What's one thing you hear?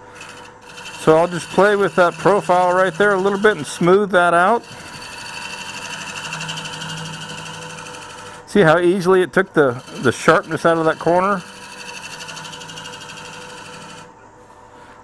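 A cutting tool scrapes against spinning wood.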